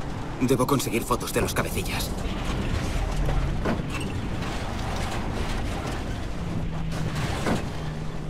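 Tyres rumble over a dirt track.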